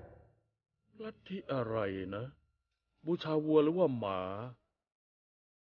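A man speaks tensely to himself, close by.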